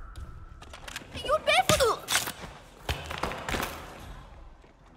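A short scuffle with thumps breaks out.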